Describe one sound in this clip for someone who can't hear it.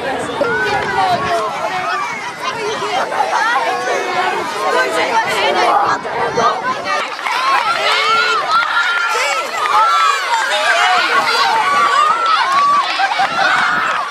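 Children shout excitedly close by.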